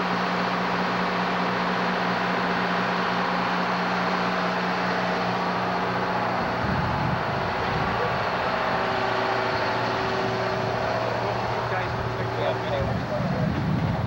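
A fire truck engine idles steadily nearby.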